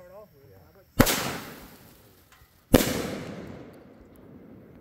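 Aerial firework shells burst with sharp booms that echo and fade outdoors.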